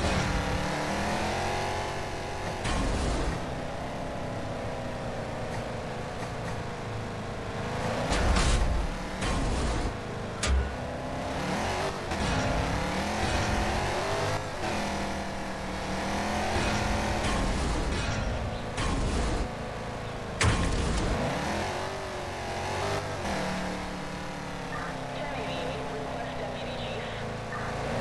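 A police SUV's engine in a mobile game revs up and down as the car speeds up and slows down.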